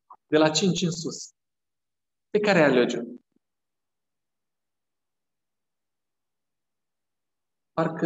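A middle-aged man speaks through a microphone in short bursts with long pauses.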